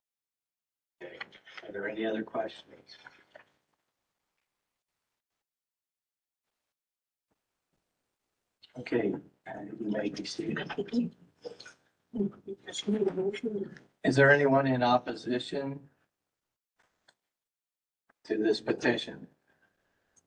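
A man speaks calmly through a microphone in an online meeting.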